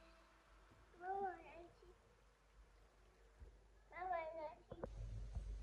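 A toddler speaks in short, high babbles close by.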